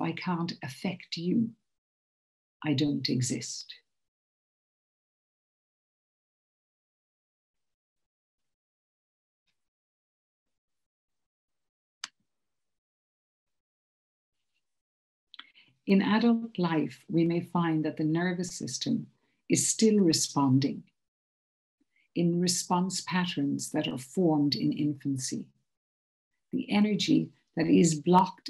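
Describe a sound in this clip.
A man speaks calmly through an online call, in phrases with long pauses.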